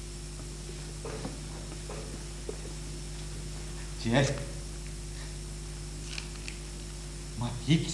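An elderly man speaks quietly nearby.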